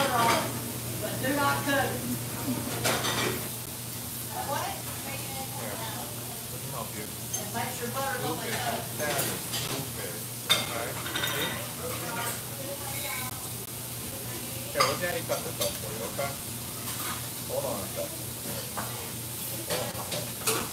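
A middle-aged man talks calmly and close by, pausing now and then.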